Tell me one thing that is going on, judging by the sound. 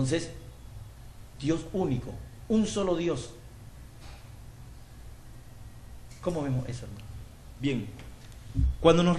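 A man speaks calmly into a microphone, close by, in short phrases with pauses.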